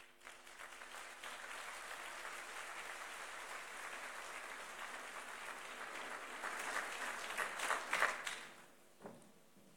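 A large audience applauds in a big echoing hall, then the clapping fades away.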